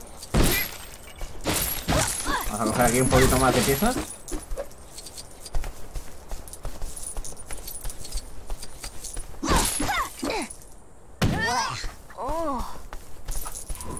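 Coins jingle as they are collected.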